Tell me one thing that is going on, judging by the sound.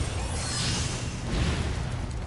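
A metal item chimes as it is picked up.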